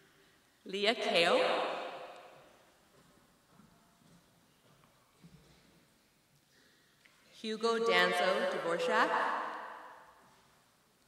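A woman calls out names through a microphone, echoing in a large hall.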